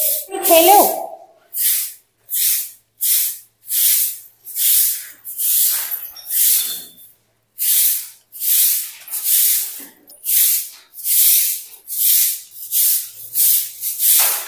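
A brush scrubs a hard floor in steady, repeated strokes.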